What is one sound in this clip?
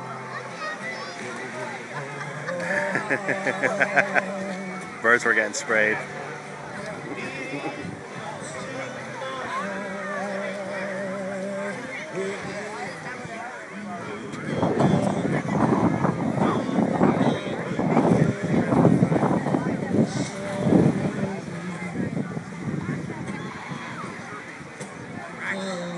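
Small waves lap against a floating dock.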